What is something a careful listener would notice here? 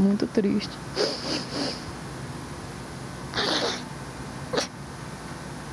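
A middle-aged woman sobs close to a microphone.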